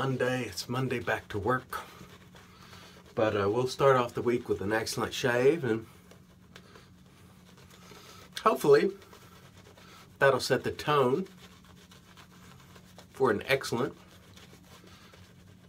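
A shaving brush swishes and lathers against a beard.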